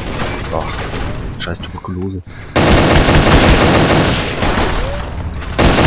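A rifle fires several loud shots.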